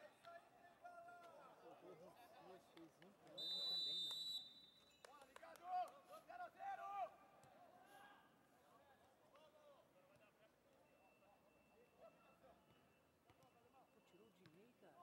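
Men shout to each other across an outdoor field.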